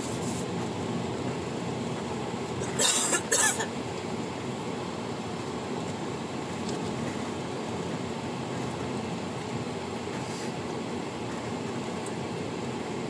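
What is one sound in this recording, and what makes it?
A car engine hums steadily with low road rumble, heard from inside the car.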